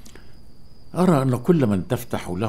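A man speaks in a low, serious voice nearby.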